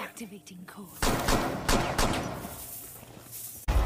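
Rifle shots crack loudly indoors.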